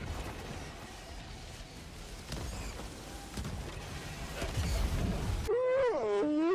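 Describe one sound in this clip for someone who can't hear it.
Explosions rumble and boom nearby.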